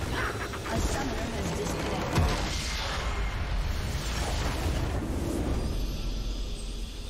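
A large structure explodes and crumbles with a deep rumbling blast.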